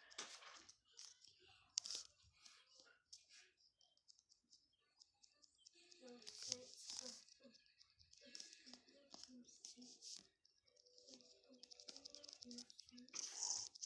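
Small paws patter quickly over crunchy snow.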